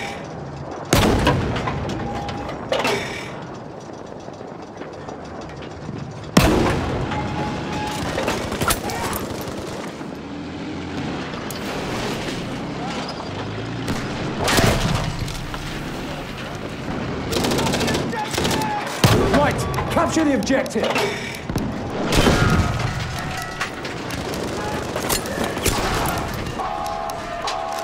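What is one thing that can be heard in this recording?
A tank engine rumbles and its tracks clank steadily.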